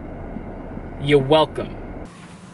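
A man speaks briefly up close.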